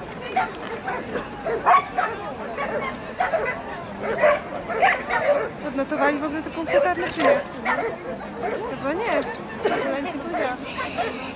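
A crowd chatters in the distance.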